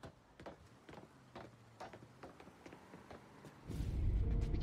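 Footsteps thud on wooden steps.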